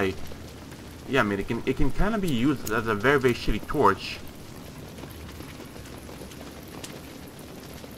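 A torch flame hisses and flickers softly.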